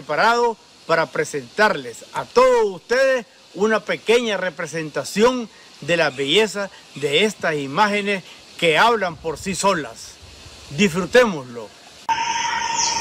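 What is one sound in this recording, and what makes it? An elderly man speaks calmly and clearly into a microphone, close by.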